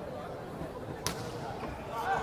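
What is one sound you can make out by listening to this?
A volleyball is spiked with a sharp smack.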